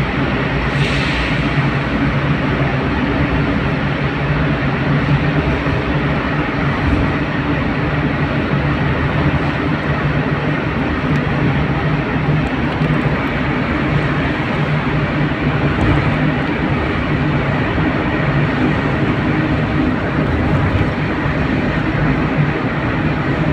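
Tyres roar steadily on the road, with a hollow echo around them.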